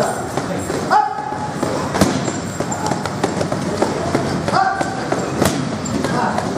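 A man strikes a heavy punching bag with a metal bar.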